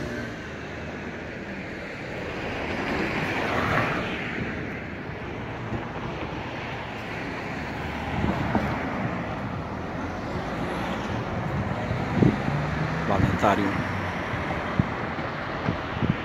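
Traffic rumbles steadily on a nearby street, outdoors.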